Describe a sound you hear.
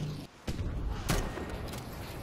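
A rocket launches with a sharp blast.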